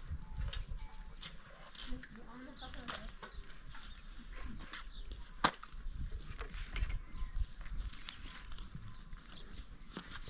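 Metal trays and dishes clink and knock as they are set down on a cloth.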